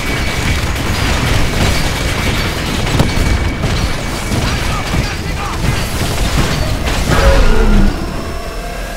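Rapid gunfire rattles amid loud battle noise.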